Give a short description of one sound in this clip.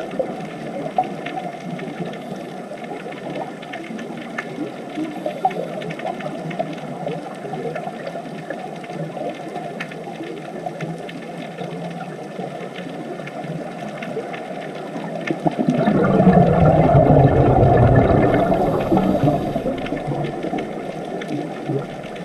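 Air bubbles from scuba divers' regulators gurgle and rise underwater.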